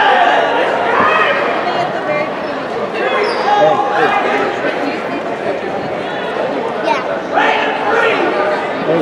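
A crowd of people chatters throughout a large echoing gym.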